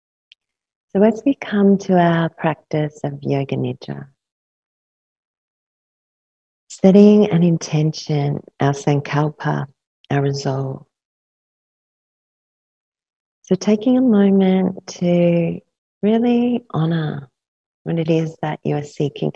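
A woman speaks calmly and softly into a close microphone, in short phrases with pauses.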